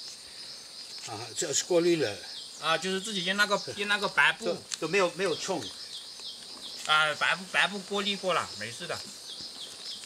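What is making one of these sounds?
An elderly man speaks calmly and clearly, close by.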